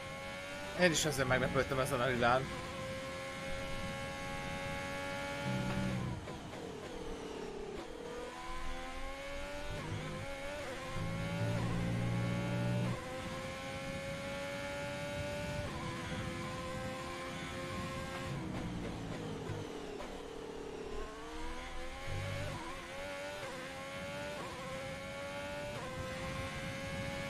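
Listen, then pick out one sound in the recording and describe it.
A racing car engine screams at high revs, dropping in pitch as it brakes into corners and rising again as it speeds up.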